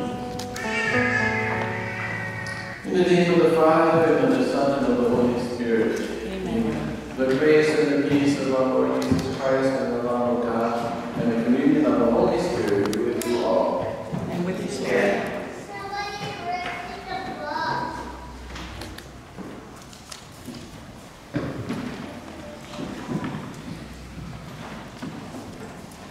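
A man speaks steadily, heard through a microphone in an echoing hall.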